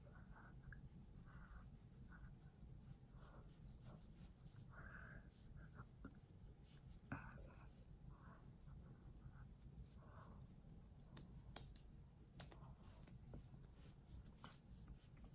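Fingers rub cream wetly over skin.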